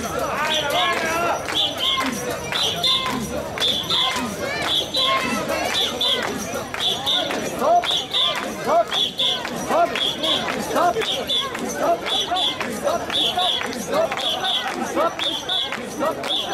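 A crowd of men and women chants loudly in rhythm, close by.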